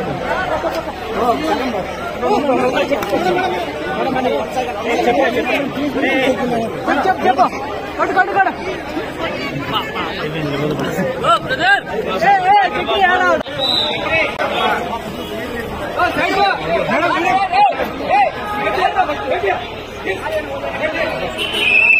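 A crowd of men and women talks and calls out excitedly close by, outdoors.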